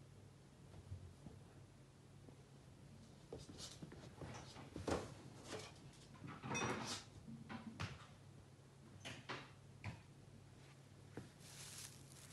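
A small rabbit rustles softly as it moves about.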